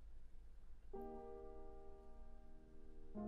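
A piano plays a held chord.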